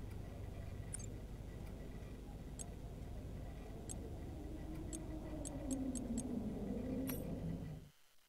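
Short menu clicks tick as selections change.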